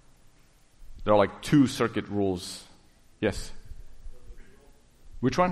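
A middle-aged man lectures with animation.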